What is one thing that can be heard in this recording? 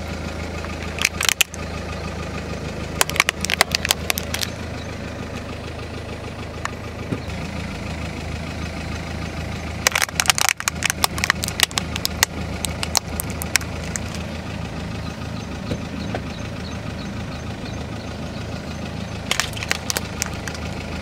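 A car tyre crushes plastic toys with sharp cracks and snaps.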